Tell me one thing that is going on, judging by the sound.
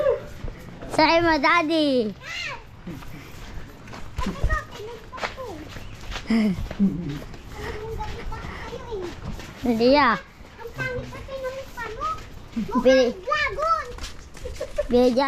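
A young child chatters and squeals nearby.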